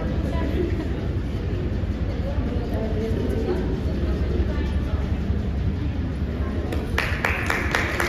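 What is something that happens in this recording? A crowd of men and women chatters in the background.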